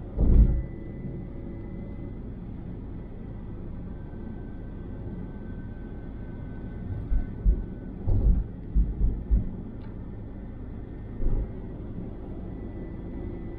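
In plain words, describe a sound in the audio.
Tyres roll on smooth pavement with a low rumble and occasional thumps.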